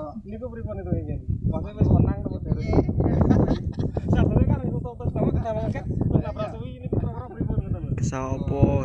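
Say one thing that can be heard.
Several young men talk over one another with animation, close by.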